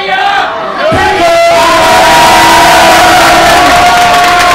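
An audience cheers and applauds loudly.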